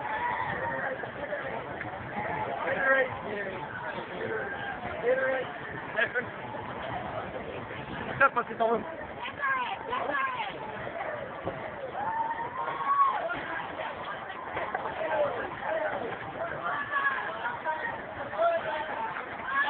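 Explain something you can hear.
A crowd of men and women chatter and call out nearby, outdoors.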